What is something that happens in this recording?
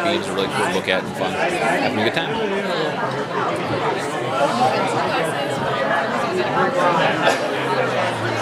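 A young man speaks close up.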